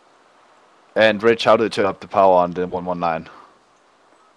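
A man speaks briefly in a calm, clear voice.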